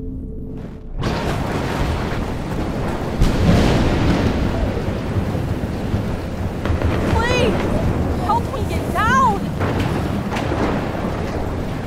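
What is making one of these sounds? Heavy rain pours down outdoors with a steady hiss.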